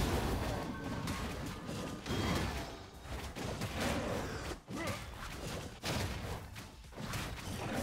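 Fighting sounds from a video game crackle and thud.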